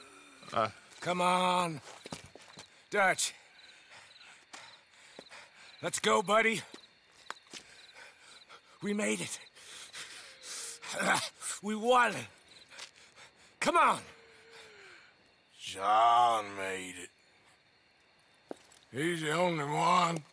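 A man speaks in a low, strained voice close by.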